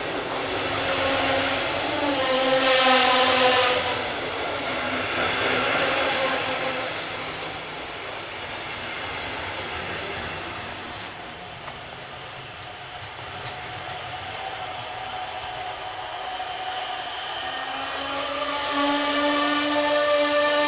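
Train brakes squeal loudly as the train slows.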